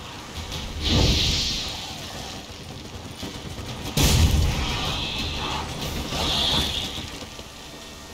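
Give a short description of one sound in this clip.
Fiery explosions burst and crackle.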